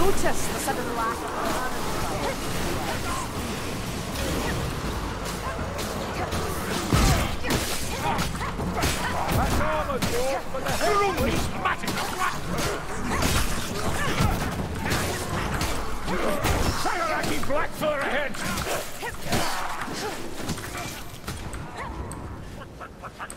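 Blades strike and slash repeatedly.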